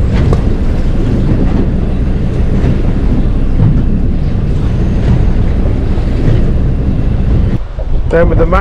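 Wind blows hard over the open sea.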